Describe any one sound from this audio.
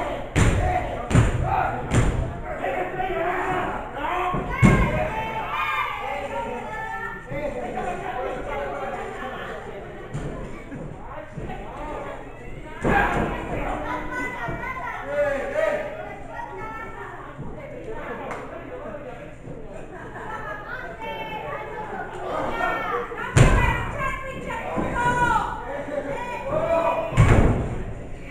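A crowd chatters and shouts around an echoing hall.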